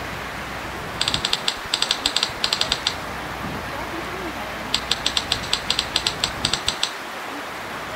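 Typewriter keys clack in quick bursts.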